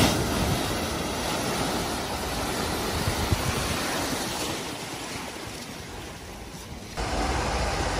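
Water surges and churns around a car wading through a flood.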